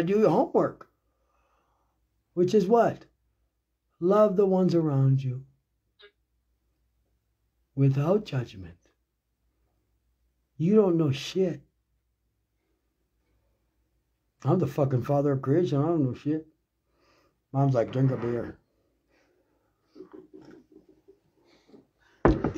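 A middle-aged man speaks calmly and slowly in short phrases, close to the microphone.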